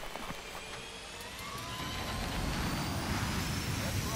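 A jet engine whines and slowly rises in pitch.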